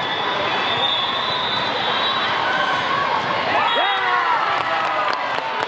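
A ball thumps off players' hands.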